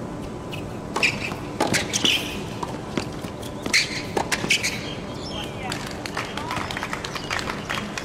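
A tennis ball is struck back and forth with sharp pops of rackets.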